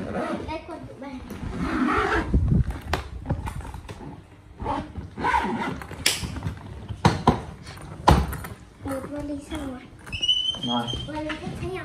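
A young girl talks nearby.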